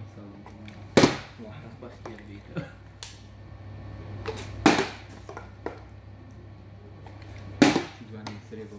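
A plastic water bottle is flipped and lands on a hard floor with a sharp thud.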